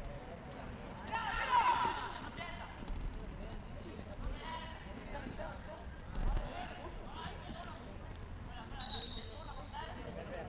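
Young players shout to each other outdoors across an open pitch.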